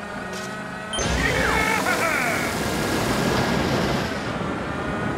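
A whooshing boost sound bursts and fades.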